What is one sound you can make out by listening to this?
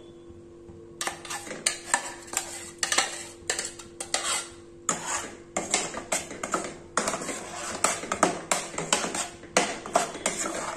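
A spoon scrapes and clinks against a metal pot.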